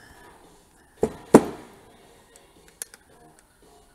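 Metal engine parts clink and knock against each other as they are handled.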